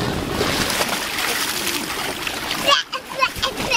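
Water splashes in a shallow pool.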